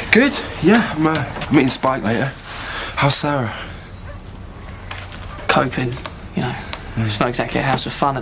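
A second young man answers calmly nearby.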